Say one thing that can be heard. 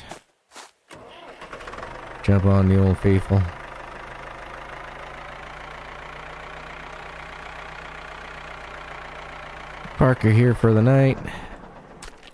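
A tractor engine chugs steadily at low speed.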